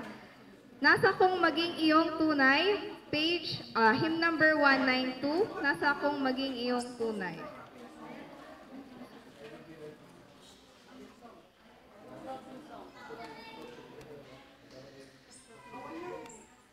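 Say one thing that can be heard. A young woman speaks clearly into a microphone, heard through a loudspeaker in a room.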